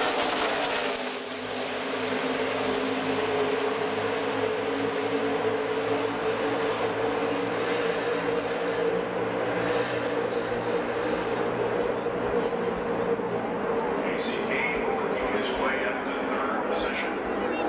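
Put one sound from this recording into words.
Race car engines drone steadily in the distance.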